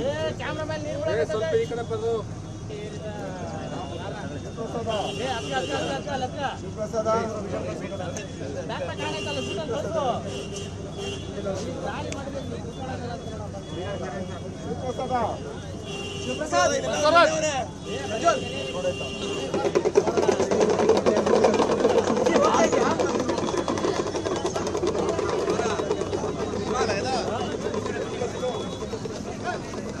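A crowd of men talks and murmurs all around, outdoors.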